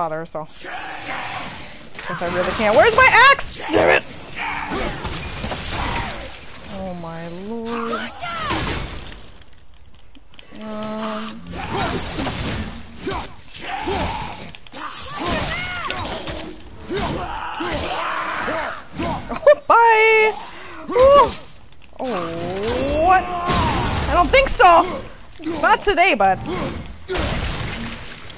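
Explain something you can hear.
An axe strikes and slashes at enemies again and again.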